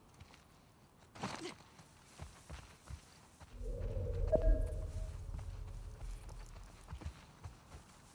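Tall grass rustles as someone walks through it.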